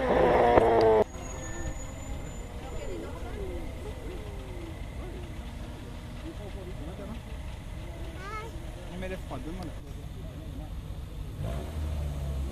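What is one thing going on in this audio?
A car engine idles nearby with a low rumble.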